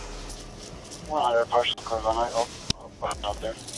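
A second man speaks briefly nearby.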